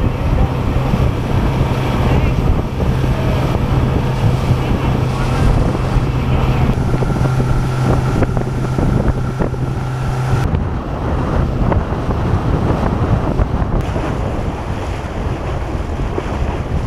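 Water rushes and splashes against the hull.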